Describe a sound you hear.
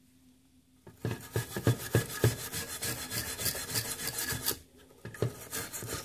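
A metal tool scrapes and clicks against a hard plastic part.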